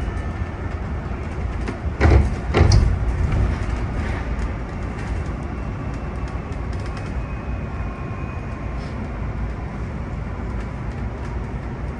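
A bus engine rumbles steadily from inside as the bus drives along.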